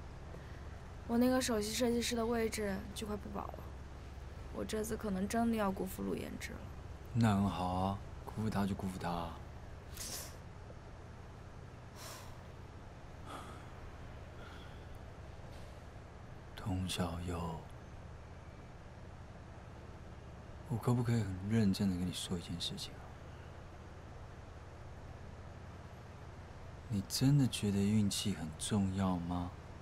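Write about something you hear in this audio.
A young man speaks quietly and calmly nearby.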